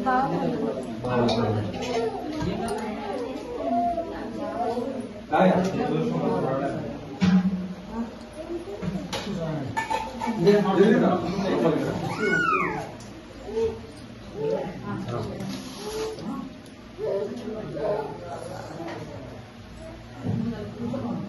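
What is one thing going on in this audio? Several men and women talk and murmur close by.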